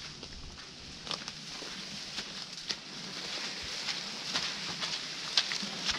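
Footsteps crunch through snowy leaves outdoors.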